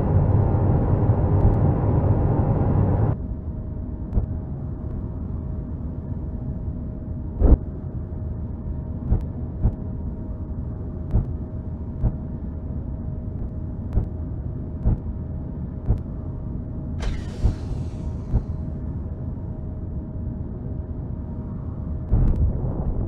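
A spacecraft's engines hum with a low, steady drone.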